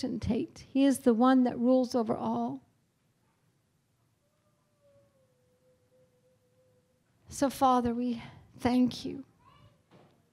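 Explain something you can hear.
A middle-aged woman speaks calmly into a microphone, heard through a loudspeaker, with pauses.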